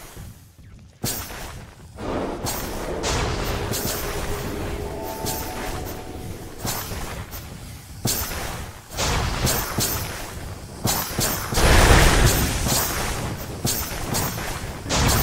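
Game spell effects and combat sounds clash and crackle.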